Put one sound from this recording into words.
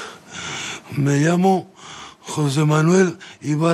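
A middle-aged man sings in a full voice, close by.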